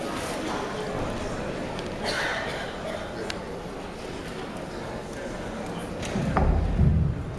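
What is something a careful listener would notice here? A man and a woman talk quietly off the microphone.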